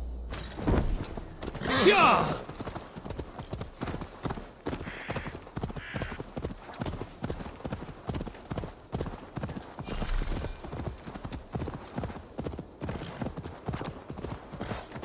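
A horse's hooves pound steadily on the ground.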